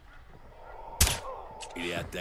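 A silenced gun fires once with a muffled pop.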